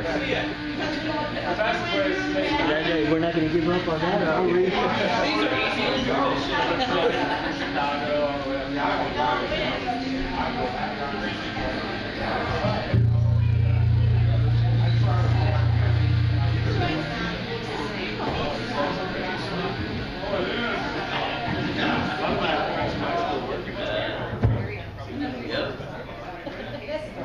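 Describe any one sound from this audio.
Drums are played in the band.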